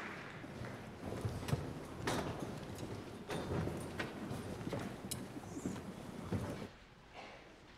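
Singers shuffle and step on wooden risers.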